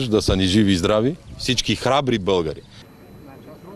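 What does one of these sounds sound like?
A man speaks firmly into microphones outdoors.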